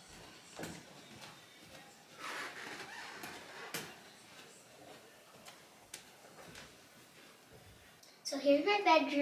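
Bare feet thump softly on wooden stairs.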